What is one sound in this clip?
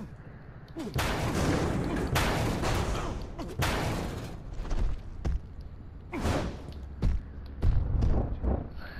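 Loud whooshing bursts sweep past.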